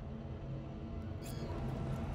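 An electronic chime sounds as a menu closes.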